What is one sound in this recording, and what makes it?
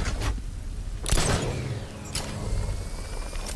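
A grappling line shoots out with a whoosh.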